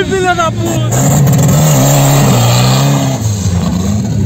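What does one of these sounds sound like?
A car engine roars as a car pulls away.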